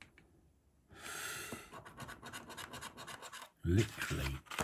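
A coin scratches at a scratch card.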